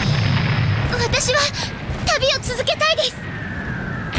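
A young woman speaks earnestly, close by.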